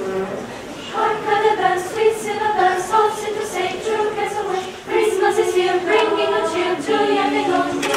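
A choir of young men and women sings together.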